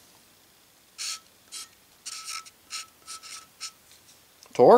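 A felt marker squeaks in short strokes across a metal plate.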